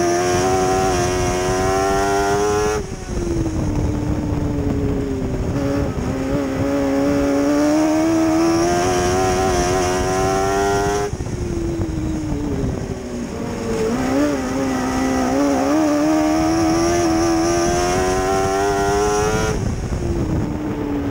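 A race car engine roars loudly up close, its pitch rising on the straights and dropping into the turns.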